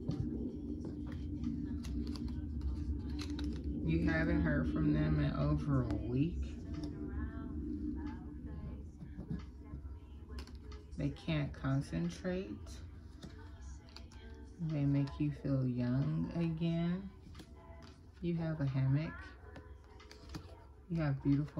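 Paper cards rustle and tap softly as they are handled.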